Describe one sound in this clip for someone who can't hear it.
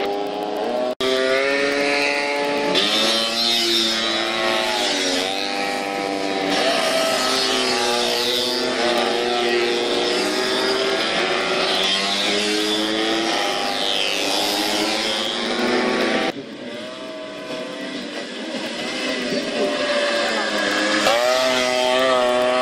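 Two-stroke Vespa scooter engines rev hard as the scooters race through a corner.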